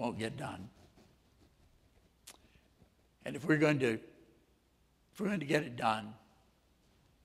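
An elderly man speaks calmly into a microphone, with short pauses between phrases.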